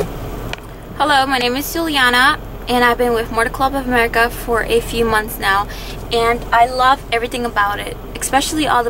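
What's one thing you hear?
A young woman speaks calmly close up.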